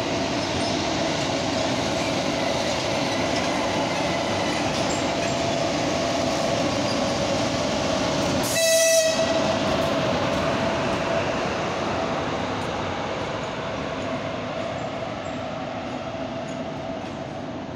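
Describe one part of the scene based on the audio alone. A locomotive rumbles past on the rails, slowly fading.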